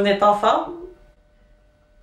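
A young woman speaks softly and playfully, close by.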